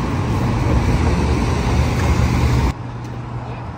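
A tram rumbles past loudly.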